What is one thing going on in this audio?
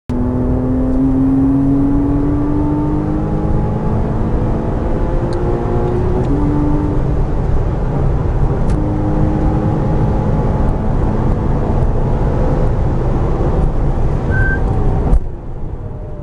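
A racing car engine roars loudly from inside the cabin, rising in pitch through the gears.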